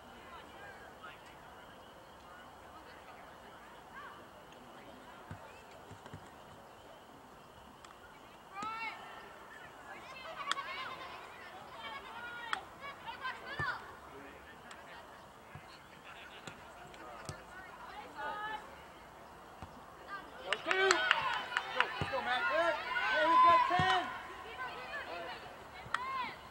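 A soccer ball is kicked with dull thumps.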